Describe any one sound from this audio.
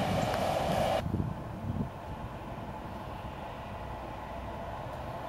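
A diesel locomotive engine drones as it approaches.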